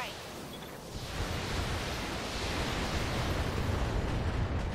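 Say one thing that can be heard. Heavy gunfire and explosions rumble.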